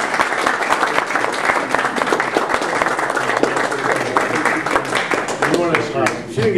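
Several people applaud.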